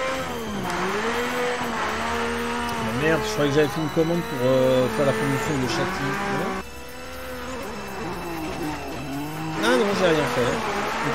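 A racing car engine revs and whines, rising and falling in pitch.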